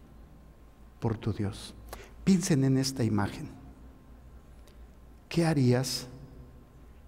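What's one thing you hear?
An elderly man speaks calmly and slowly through a microphone, with pauses.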